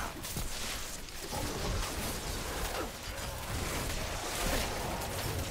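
Magic spells crackle and zap in rapid bursts.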